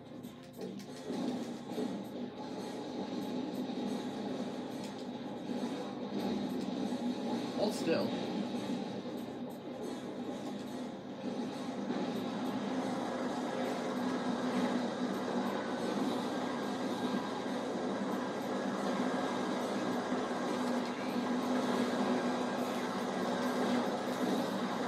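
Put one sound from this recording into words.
Video game explosions and blaster fire boom through a television speaker.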